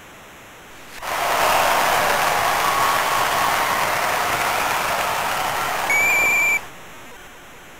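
A large crowd cheers and roars in an arena.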